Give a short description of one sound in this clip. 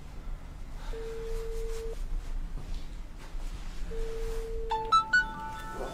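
A ringing tone sounds through a phone earpiece.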